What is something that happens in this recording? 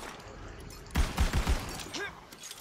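Gunshots fire in quick succession.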